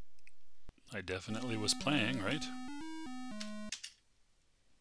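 A short electronic game tune plays in quick beeping notes.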